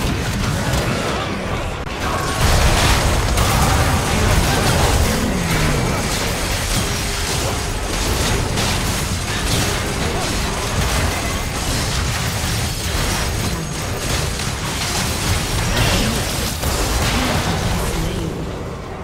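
Spell blasts and weapon hits clash rapidly in a video game battle.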